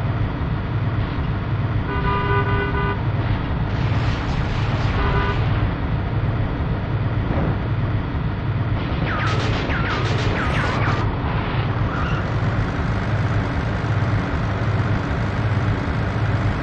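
A vehicle engine rumbles steadily throughout.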